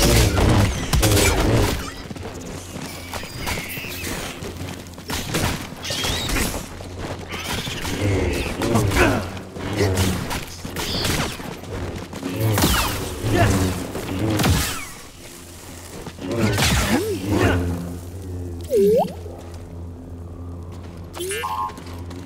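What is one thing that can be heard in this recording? A humming blade swings and whooshes through the air.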